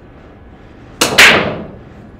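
A cue strikes a billiard ball sharply.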